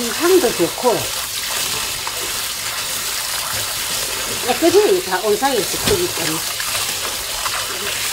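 Hands swish leaves around in water.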